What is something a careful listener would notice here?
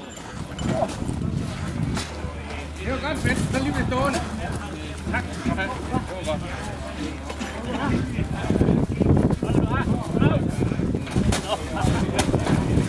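Several men talk with one another nearby, outdoors.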